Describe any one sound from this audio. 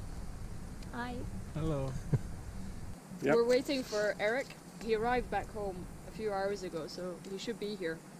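A young woman talks and laughs close by.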